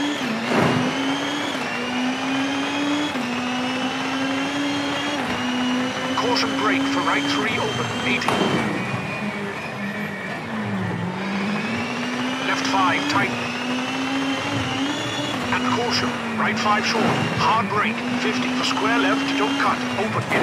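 Tyres crunch and skid over loose gravel.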